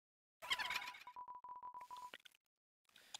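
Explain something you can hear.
Short electronic blips chirp in quick succession.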